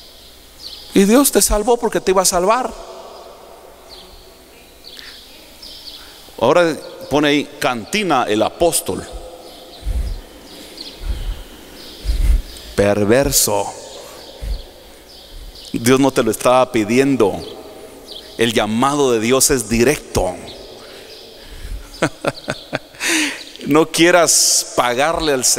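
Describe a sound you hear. A man speaks with animation through a microphone, in bursts with pauses, in a large echoing hall.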